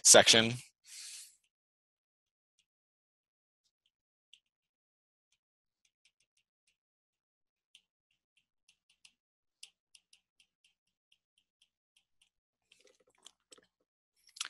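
A stylus taps and scratches faintly on a tablet's glass.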